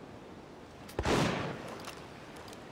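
A pistol shot bangs and echoes briefly.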